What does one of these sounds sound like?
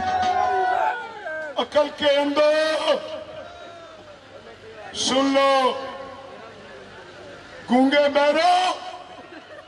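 A man shouts forcefully into a microphone, heard through loudspeakers.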